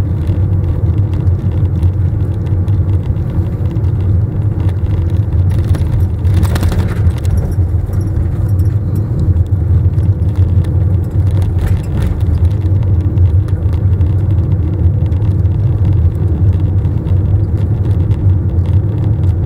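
Tyres roll over tarmac with a steady rumble.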